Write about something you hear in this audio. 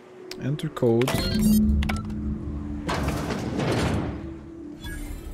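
A heavy metal door rumbles as it slides open.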